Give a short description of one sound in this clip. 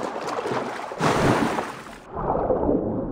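Water rushes and bubbles loudly as someone dives under.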